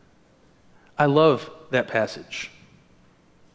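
A man speaks briefly and calmly in an echoing room.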